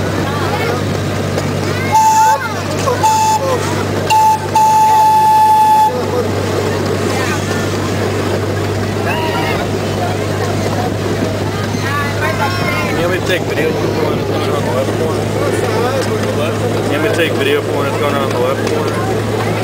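A miniature park train's engine drones as it runs.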